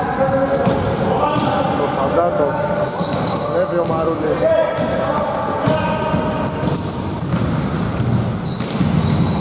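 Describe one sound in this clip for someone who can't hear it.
A basketball thuds on the floor.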